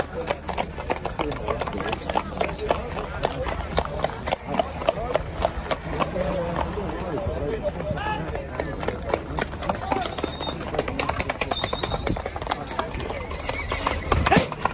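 Cart wheels rattle over a paved road.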